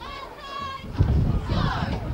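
Football players collide with dull thuds.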